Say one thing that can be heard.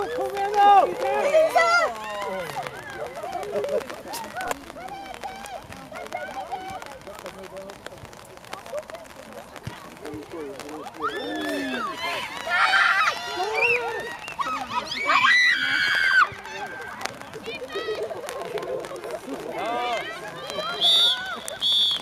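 Young girls shout and call out to each other outdoors.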